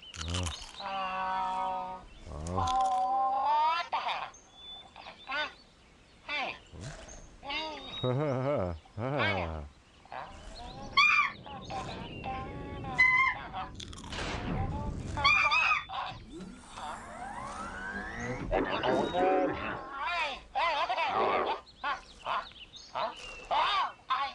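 A man speaks in a high, cartoonish voice with animation, close by.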